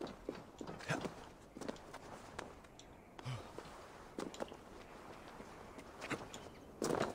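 Scrabbling and thudding footsteps sound as a climber scrambles over rock.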